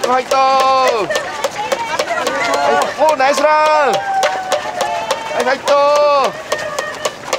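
Spectators cheer and shout loudly nearby.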